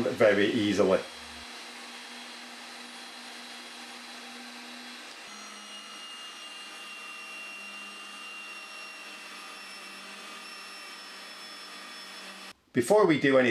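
A pipe threading machine motor hums steadily.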